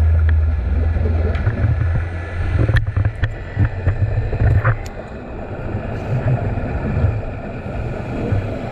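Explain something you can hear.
Water rumbles and crackles softly, heard underwater.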